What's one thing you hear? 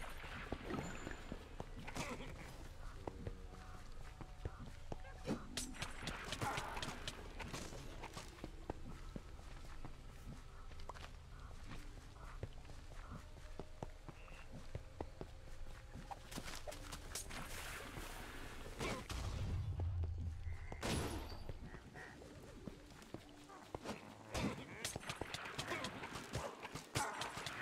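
Sword swings and hits clatter in a fight.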